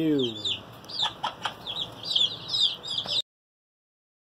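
Chicks peep rapidly and shrilly close by.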